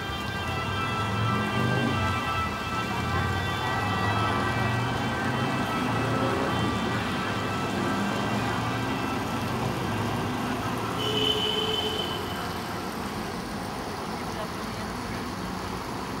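City traffic rumbles steadily along a nearby road.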